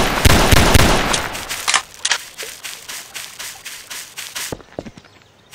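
Quick footsteps patter on a hard surface.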